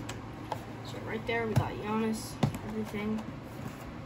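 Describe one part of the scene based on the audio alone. A box knocks down onto a table.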